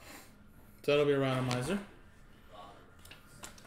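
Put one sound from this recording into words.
Trading cards shuffle and rustle softly in hands.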